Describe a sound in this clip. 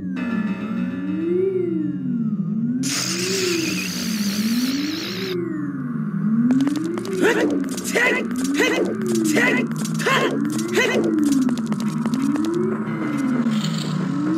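Game music plays with a tone that slowly rises and falls.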